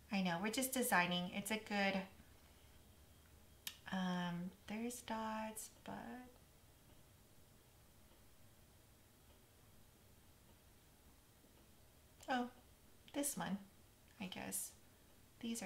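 A woman talks calmly and close to a microphone, in short bursts with pauses.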